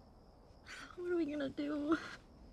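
A young girl asks a question in a tearful, shaky voice.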